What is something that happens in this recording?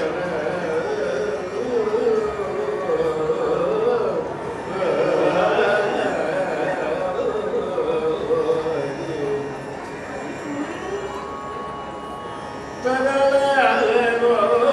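A violin plays along with the singer.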